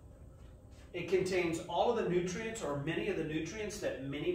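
A middle-aged man speaks calmly, as if teaching, in a room with a slight echo.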